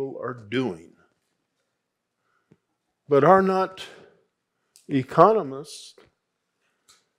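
An elderly man speaks slowly and calmly into a microphone, with pauses.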